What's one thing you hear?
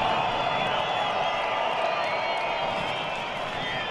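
A large crowd cheers and whistles outdoors.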